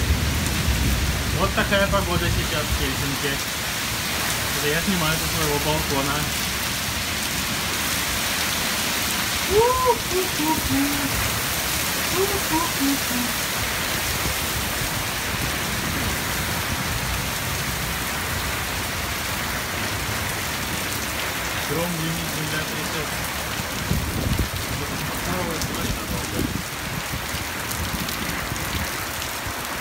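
Strong wind roars and gusts through trees.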